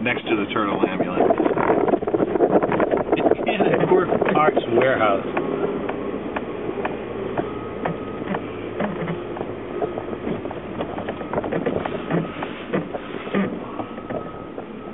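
A vehicle engine hums steadily while driving slowly.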